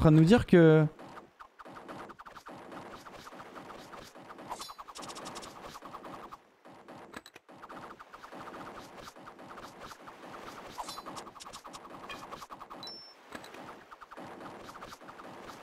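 Game music plays steadily with light chimes.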